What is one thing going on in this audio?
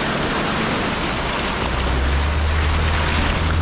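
Tyres crunch over rocks.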